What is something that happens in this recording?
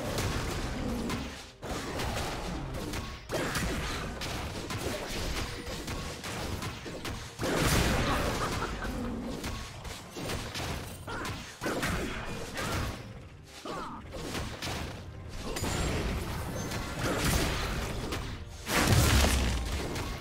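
Spell effects crackle and whoosh as game characters fight.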